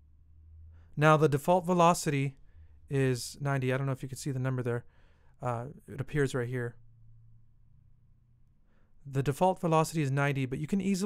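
A plucked guitar plays a short pattern of notes.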